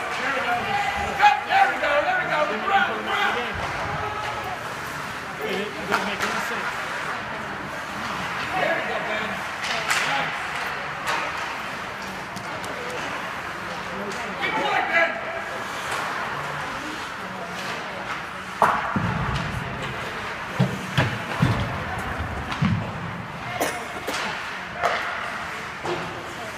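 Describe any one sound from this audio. Skates scrape and carve across the ice.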